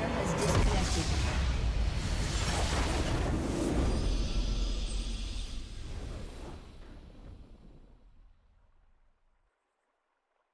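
A triumphant victory fanfare swells and fades out.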